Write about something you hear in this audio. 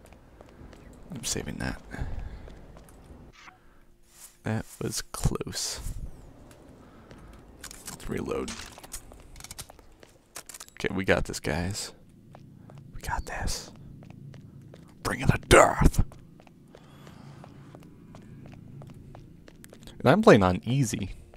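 Footsteps run quickly on hard stone steps and floors.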